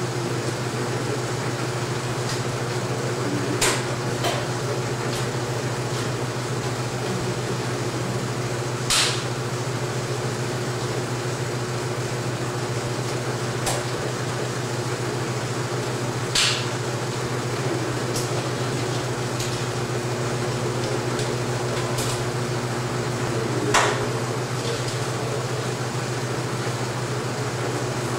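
A film projector hums and whirs steadily.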